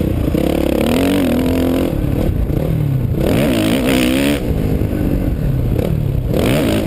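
A dirt bike engine revs hard close by, rising and falling in pitch.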